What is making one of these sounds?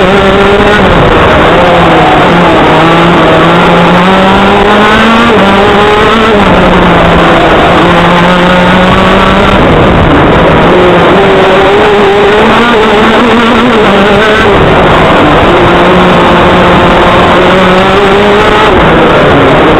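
A kart engine drones loudly close by, its pitch rising and falling with the throttle.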